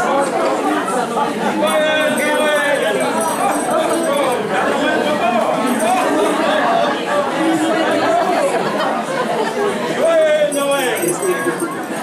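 Women sing together cheerfully.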